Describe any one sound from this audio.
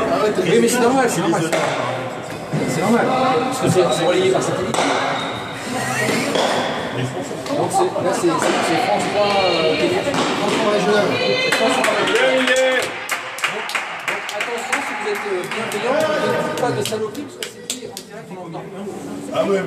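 A pelota ball smacks against a wall in a large echoing hall.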